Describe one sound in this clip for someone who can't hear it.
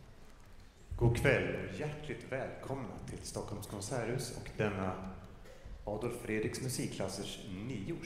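A man speaks to the audience in a large concert hall.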